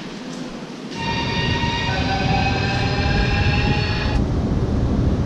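A train hums beside a platform.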